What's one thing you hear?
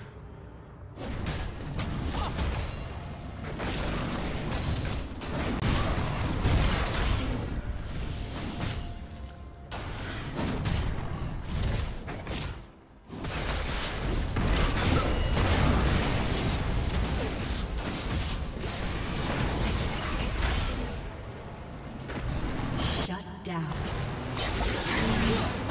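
Game spell effects whoosh, clash and crackle in a busy fight.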